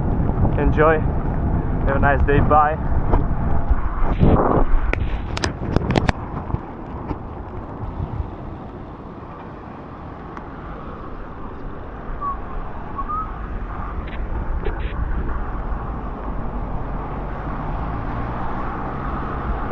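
Wind rushes past a microphone as a bicycle rides.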